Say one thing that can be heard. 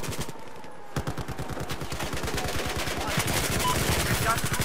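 Automatic rifles fire rapid bursts of gunshots.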